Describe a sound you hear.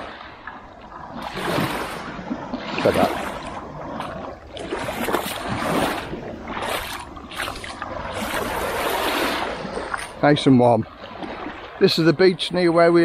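Small waves wash and hiss onto a sandy shore.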